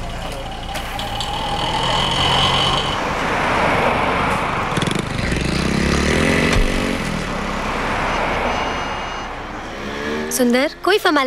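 Car engines hum and traffic passes on a street.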